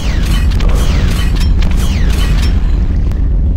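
A gun fires a blast.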